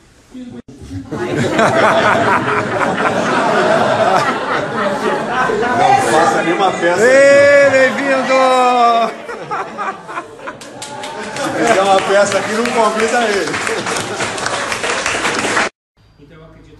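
A crowd cheers and shouts excitedly in an echoing room.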